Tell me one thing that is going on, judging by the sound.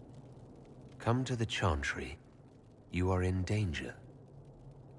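A young man speaks in a low, smooth voice.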